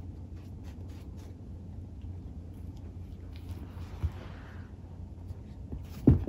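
A kitten bats a small toy across a carpet.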